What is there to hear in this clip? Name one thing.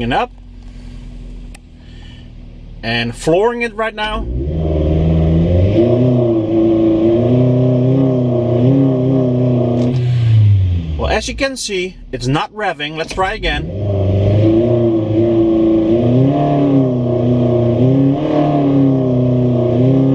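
A car engine idles, then revs up to a loud steady drone, drops back and revs up again.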